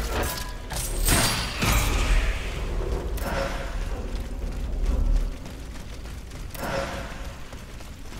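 Blades slash and clash in a close fight.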